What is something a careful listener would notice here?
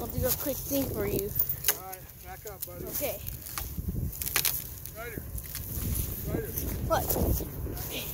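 Footsteps crunch on dry grass and twigs.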